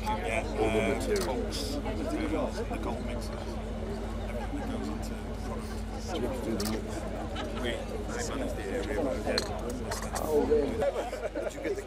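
A middle-aged man answers in a friendly voice.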